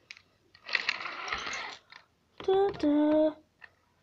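A plastic toy engine clatters onto a toy track.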